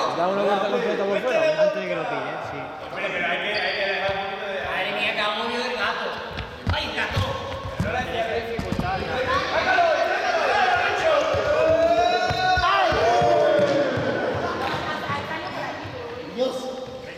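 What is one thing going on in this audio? A group of young people talk and shout with animation in a large echoing hall.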